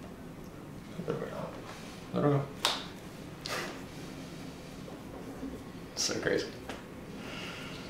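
A man laughs softly nearby.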